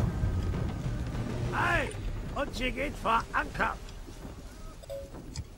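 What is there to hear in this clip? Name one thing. Wind blows through sails and rigging.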